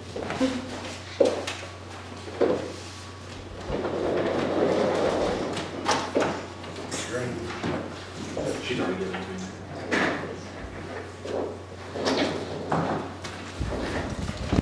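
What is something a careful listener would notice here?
A man speaks calmly, heard through a room's microphone.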